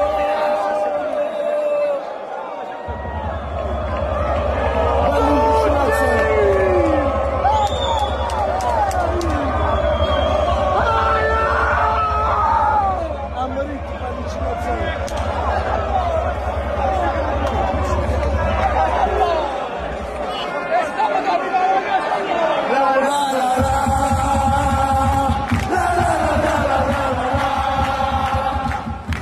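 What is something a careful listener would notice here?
A large crowd of young men chants and sings loudly.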